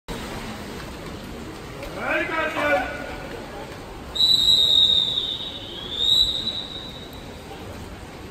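People murmur in a large echoing hall.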